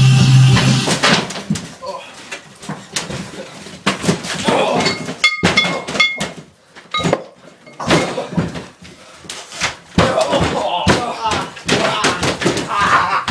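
Bodies thud onto a padded floor.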